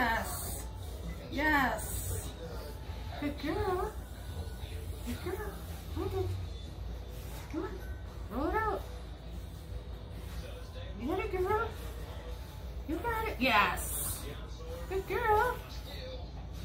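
A woman talks to a dog in a high, cheerful voice nearby.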